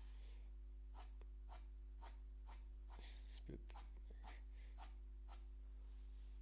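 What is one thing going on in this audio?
A pencil scratches across paper in short, quick strokes.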